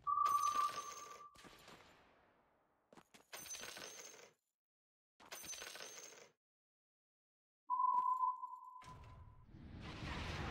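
Short game chimes ring out, each fading away.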